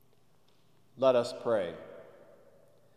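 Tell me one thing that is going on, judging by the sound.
A man chants a short phrase in a loud, echoing hall.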